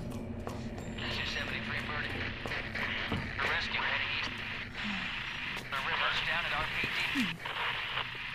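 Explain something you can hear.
A man's voice speaks through a crackling police radio.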